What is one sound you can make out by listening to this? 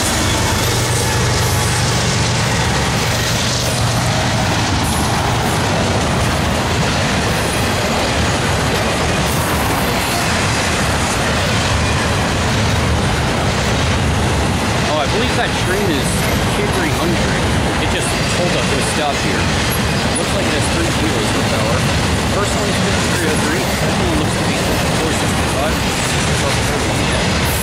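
A freight train rumbles past loudly close by.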